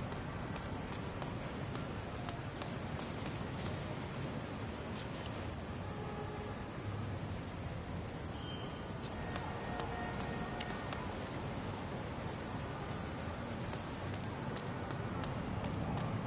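Footsteps tap on a hard rooftop.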